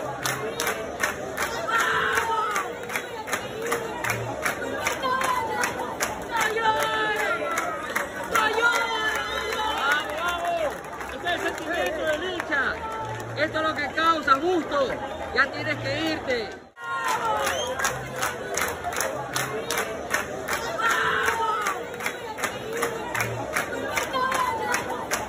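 A young boy sobs and cries out with emotion.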